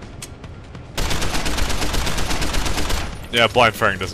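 Rapid gunfire bursts.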